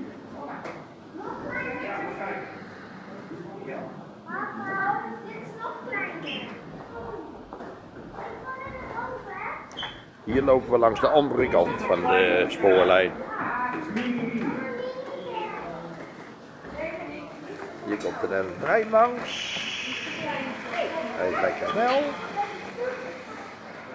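A crowd of adult men and women chatters nearby.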